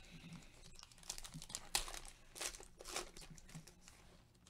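A foil wrapper crinkles and rips as it is torn open.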